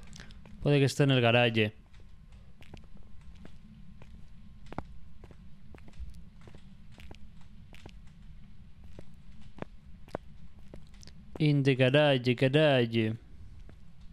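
A young man speaks briefly and animatedly into a close microphone.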